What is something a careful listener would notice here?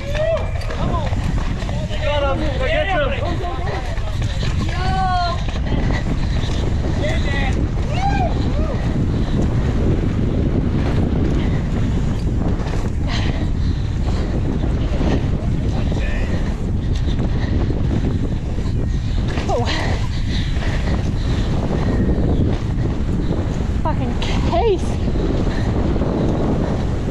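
Bike tyres rumble and skid over loose dirt.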